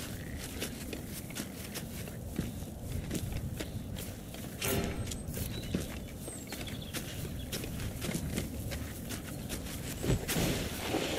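Footsteps tread on rock and dirt.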